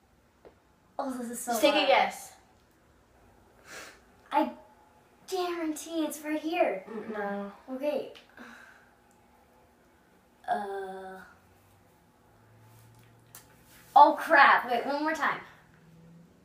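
Teenage girls talk and laugh nearby, with animation.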